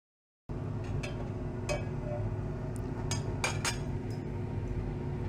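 Metal tongs clink against a glass beaker.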